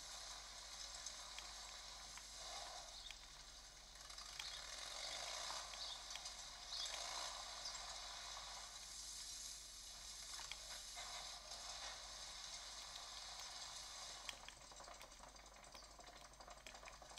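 A game's motorbike engine hums steadily through small built-in speakers.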